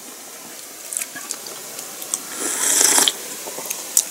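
A woman slurps a hot drink close by.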